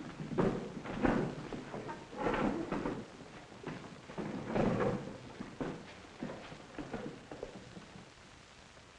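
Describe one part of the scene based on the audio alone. Boots thud on a wooden floor as men walk.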